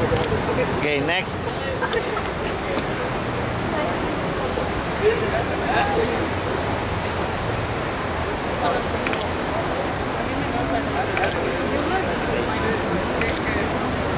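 Young women talk and chatter nearby, outdoors.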